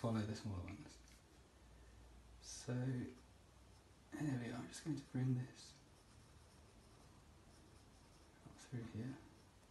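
A pencil scratches lightly on paper.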